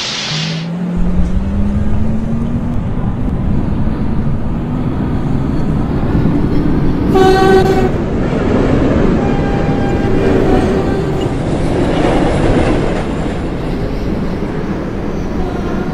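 A subway train's wheels rumble on the rails.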